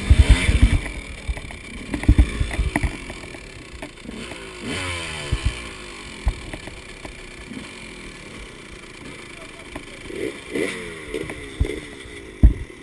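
A two-stroke dirt bike engine idles, with short blips of the throttle.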